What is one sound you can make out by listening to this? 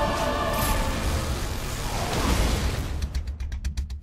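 A fiery explosion roars.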